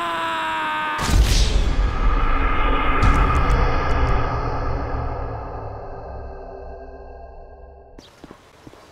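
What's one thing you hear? An explosion booms loudly and rumbles away slowly.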